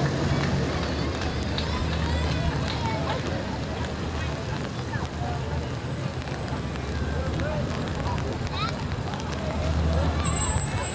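An ambulance engine hums as it drives slowly closer.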